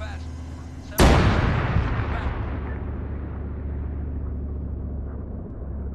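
A loud explosion booms and slowly rumbles away.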